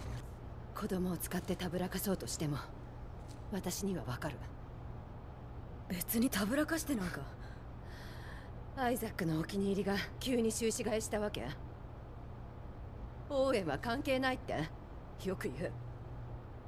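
A young woman speaks tensely.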